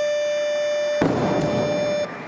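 A loaded barbell crashes onto the floor.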